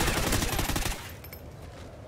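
A rifle fires a few sharp shots.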